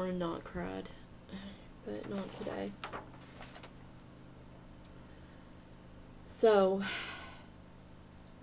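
A middle-aged woman speaks calmly and close by, heard through a microphone.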